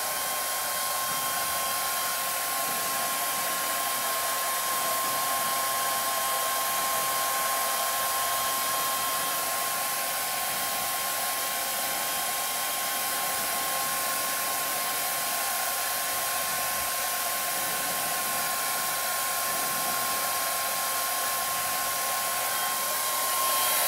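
A hair dryer blows with a steady whirring roar close by.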